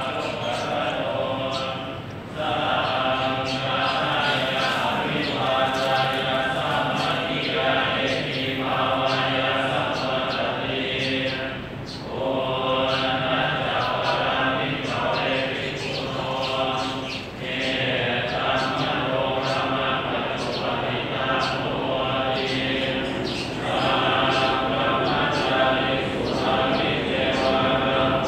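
Male voices chant together in a steady, droning rhythm, echoing through a large hall.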